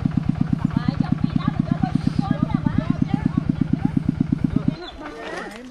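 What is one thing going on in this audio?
A small engine chugs steadily close by, then stops.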